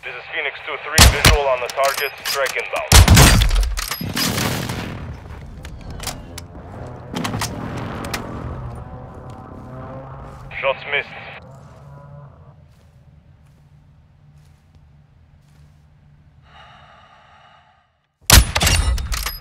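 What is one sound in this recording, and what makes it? A rifle fires loud, echoing shots.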